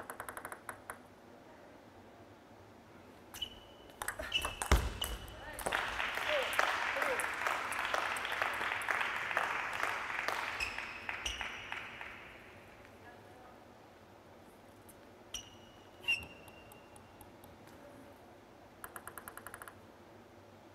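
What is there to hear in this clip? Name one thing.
A ping-pong ball bounces quickly on a table before a serve.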